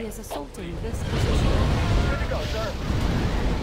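A large explosion booms with a deep rumble.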